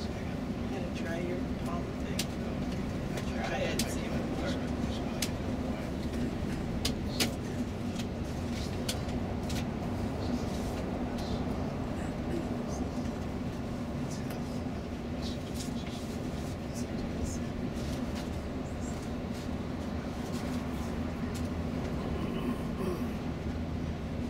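A vehicle's engine drones steadily.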